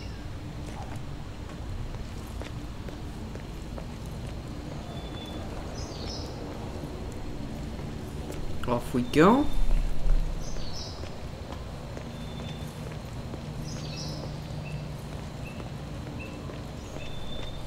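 Footsteps walk steadily on hard ground.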